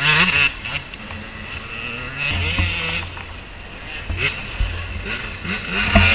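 A motorcycle engine revs up and down nearby.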